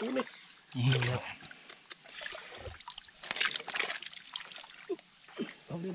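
Muddy water splashes and sloshes around a man wading.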